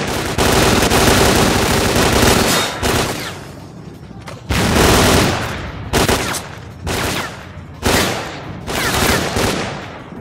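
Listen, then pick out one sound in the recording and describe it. Rifle gunfire bursts loudly and echoes.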